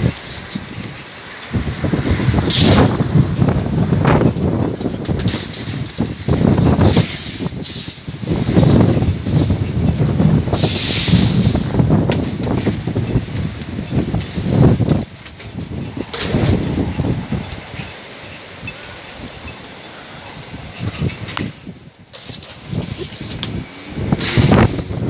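Strong gusts of wind roar and buffet loudly outdoors, rising and falling.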